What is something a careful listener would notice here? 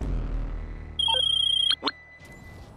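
A phone rings with a short high electronic trill.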